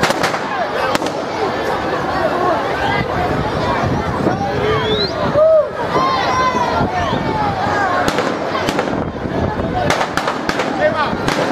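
Firecrackers pop and bang in a burning effigy.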